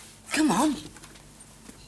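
A boy speaks briefly nearby.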